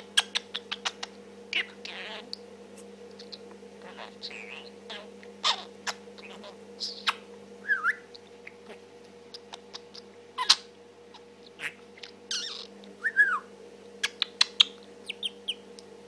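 A budgie chirps and clicks softly, close by.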